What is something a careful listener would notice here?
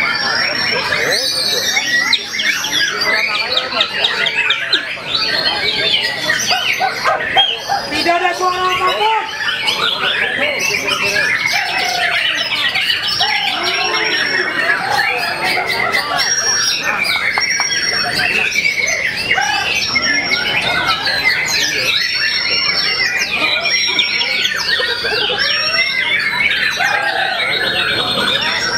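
Many caged songbirds chirp and whistle loudly all around, echoing under a large roof.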